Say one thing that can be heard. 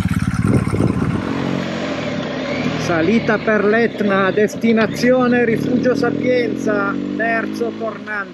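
A motorcycle engine hums as the motorcycle rides along a road.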